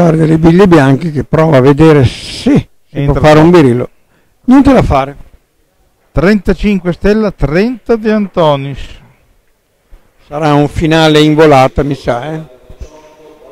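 A man talks with animation, close by, in a large echoing hall.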